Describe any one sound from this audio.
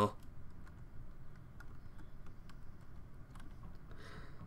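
Soft game footsteps patter quickly.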